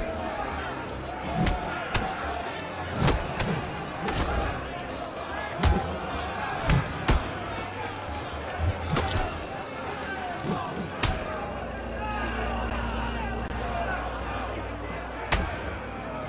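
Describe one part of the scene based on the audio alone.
A large crowd of men cheers and shouts loudly.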